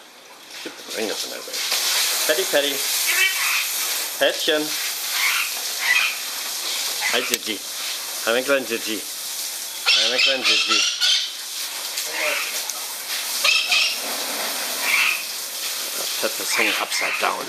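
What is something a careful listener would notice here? Parrots squawk and chatter loudly close by.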